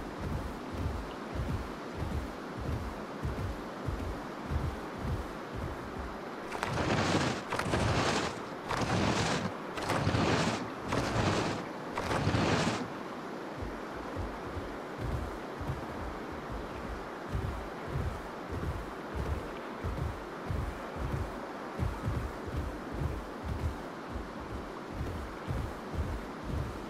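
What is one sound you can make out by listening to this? Heavy footsteps of a large creature thud steadily on dry ground.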